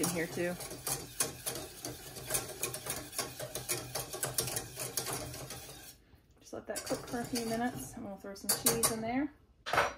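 A wire whisk clinks and scrapes against a metal pot.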